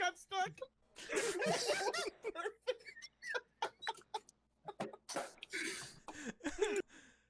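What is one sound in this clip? Men and women laugh over an online call.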